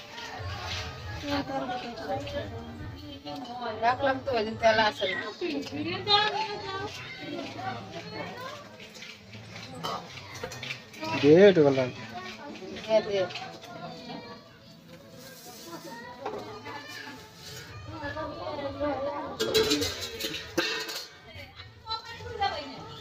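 Women talk casually nearby.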